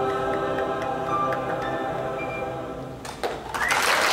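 A choir sings together in a large hall, holding a final chord.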